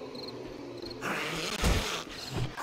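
A zombie growls hoarsely close by.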